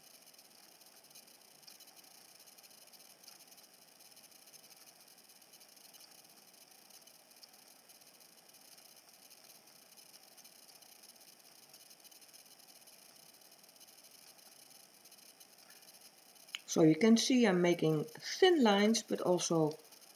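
A wooden stick scrapes softly inside a plastic cup.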